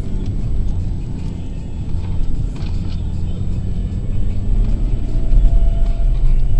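A car engine rumbles steadily as the vehicle drives over sand.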